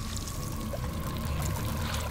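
Water pours and drips into a wooden tub.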